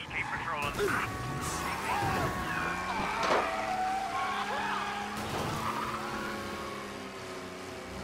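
Tyres screech as a car swerves.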